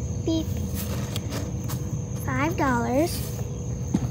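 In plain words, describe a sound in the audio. A plastic toy slides into a cardboard box with a soft scrape.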